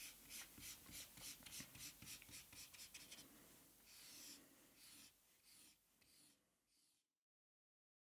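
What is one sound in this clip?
A felt-tip marker squeaks and scratches in quick strokes across paper.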